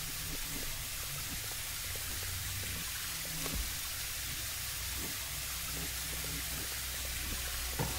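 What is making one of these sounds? Footsteps cross a hard floor.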